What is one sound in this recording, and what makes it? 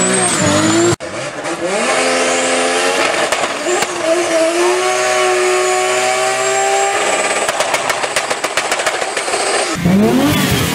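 A sports car engine revs and roars during a burnout.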